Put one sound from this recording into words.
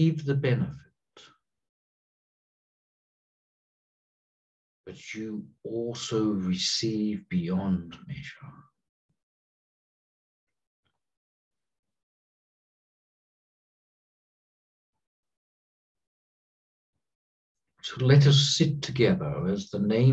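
A middle-aged man speaks calmly and slowly through a headset microphone, with long pauses.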